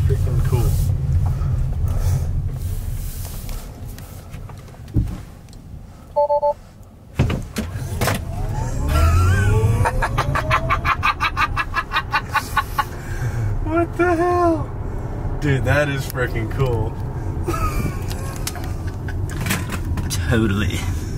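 A car's tyres rumble steadily on the road.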